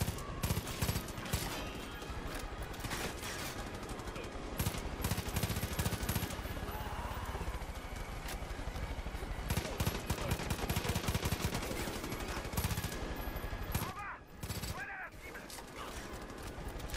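Rapid gunfire bursts loudly and repeatedly.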